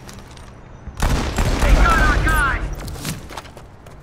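A sniper rifle fires a single loud, booming shot that echoes away.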